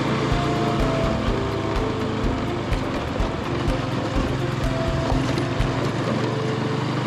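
Motorcycle wheels thump over bumps in a rough road.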